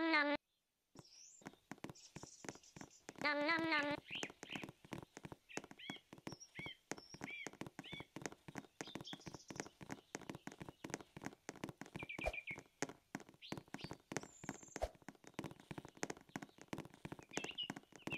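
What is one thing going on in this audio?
Footsteps patter quickly and steadily on the ground.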